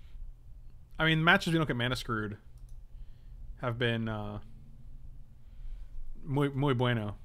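A man speaks calmly into a microphone in short bursts.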